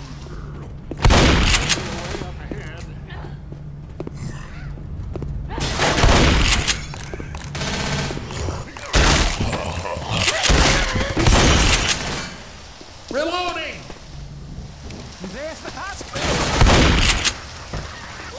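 A shotgun fires loud, sharp blasts.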